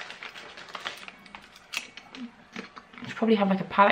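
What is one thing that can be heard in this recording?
A woman crunches a snack while chewing.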